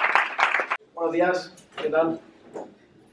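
A young man greets the audience calmly.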